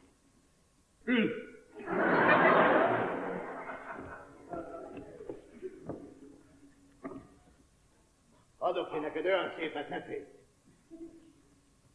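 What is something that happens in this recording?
An elderly woman speaks.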